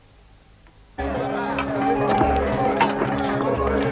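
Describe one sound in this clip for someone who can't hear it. A crowd of people chatter loudly all at once.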